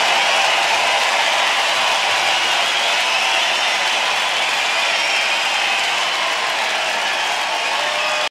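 A band plays music loudly.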